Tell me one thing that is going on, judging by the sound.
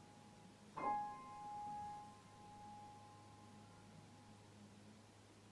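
A piano chord rings out and slowly fades.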